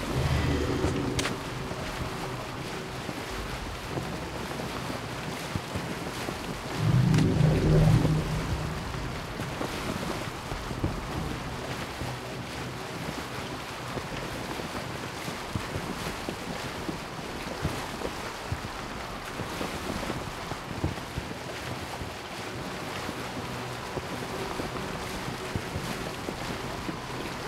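Water splashes steadily against the bow of a moving boat.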